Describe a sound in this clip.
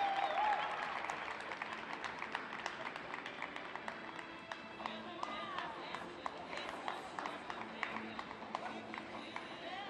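An audience claps in a large echoing arena.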